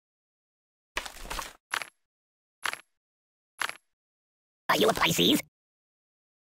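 Game menu sounds click briefly.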